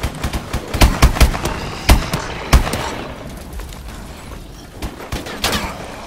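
A mounted turret gun fires bursts of loud shots.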